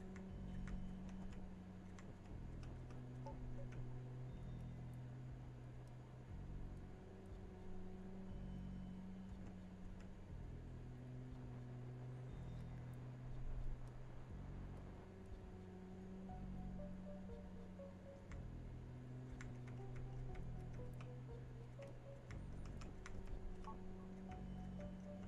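Short soft blips sound as pieces are pushed around.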